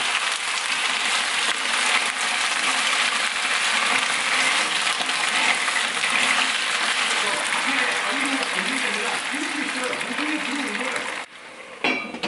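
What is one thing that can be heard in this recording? Clams and oil sizzle loudly in a hot pan.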